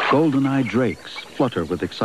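Water splashes as ducks scuffle.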